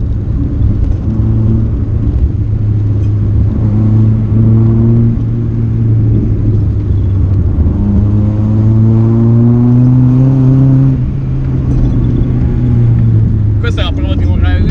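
A car engine hums and revs up and down inside the car.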